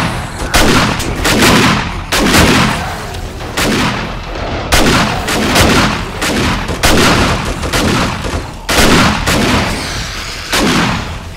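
A shotgun fires loud blasts again and again, each followed by a rolling echo.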